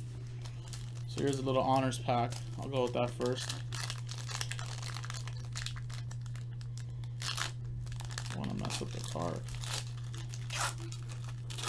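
A foil wrapper crinkles as hands tear it open.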